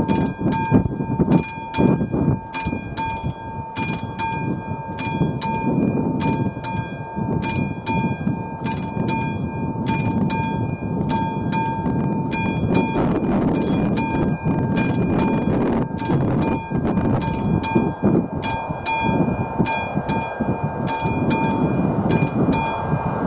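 A level crossing bell rings steadily in a fast, even rhythm.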